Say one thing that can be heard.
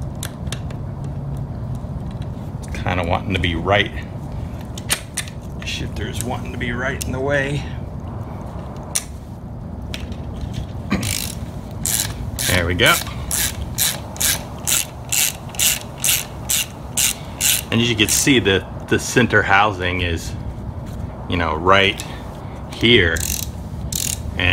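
Metal parts clink and knock together.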